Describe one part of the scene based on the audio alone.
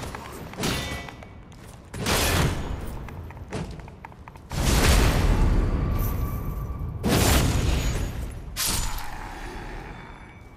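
Heavy weapon blows strike and thud in loud bursts.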